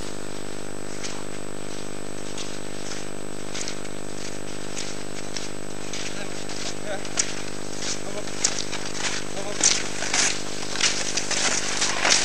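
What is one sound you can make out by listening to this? Cross-country skis swish over snow, growing closer.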